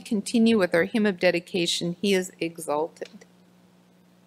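A woman speaks calmly through a microphone in an echoing room.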